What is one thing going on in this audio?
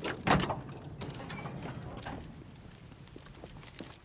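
A car's metal hood clunks open.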